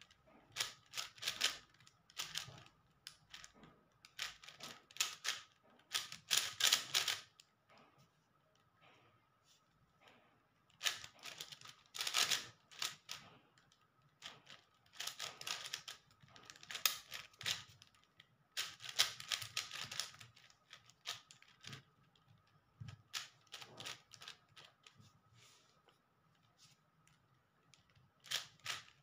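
Plastic puzzle cube layers click and rattle as they are turned quickly in bursts.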